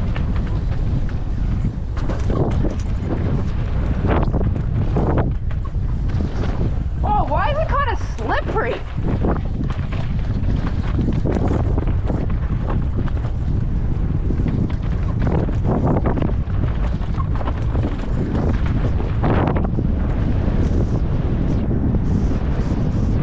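Bike tyres crunch and skid over loose dirt and rocks.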